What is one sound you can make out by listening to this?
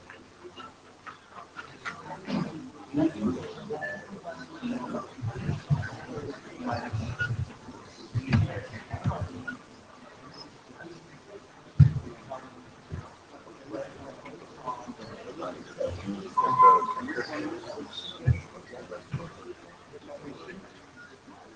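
A man speaks into a microphone in a large room, heard through loudspeakers.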